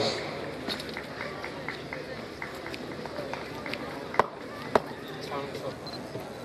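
A large crowd murmurs in the distance outdoors.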